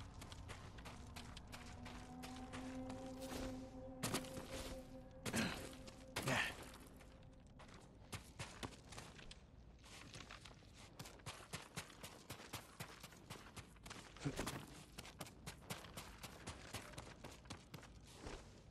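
Footsteps crunch and scuff on stone.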